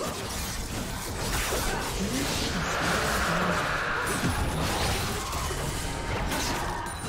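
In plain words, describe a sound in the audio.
Video game spells whoosh, crackle and burst in a busy fight.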